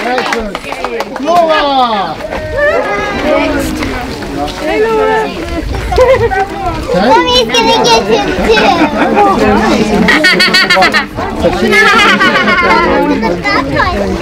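Children shriek and laugh excitedly.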